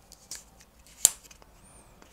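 A bottle cap twists open with a click.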